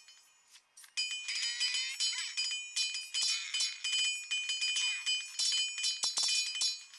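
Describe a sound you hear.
Swords clash and clang rapidly in a busy battle.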